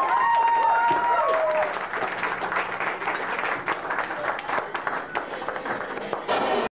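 Drums and cymbals crash and clatter.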